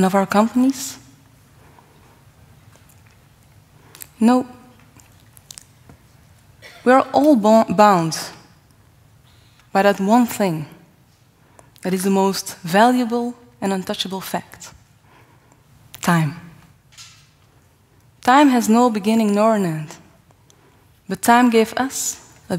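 A young woman speaks calmly into a microphone, with pauses, in a large hall.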